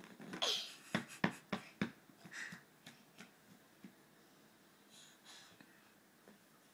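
A young girl giggles softly close by.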